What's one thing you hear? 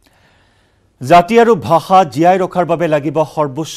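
A man speaks clearly and steadily into a microphone.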